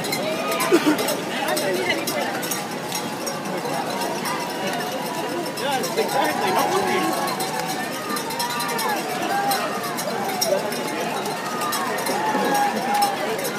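A crowd of voices cheers and chatters outdoors.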